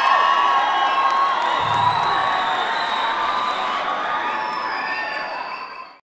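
A band plays music loudly on stage.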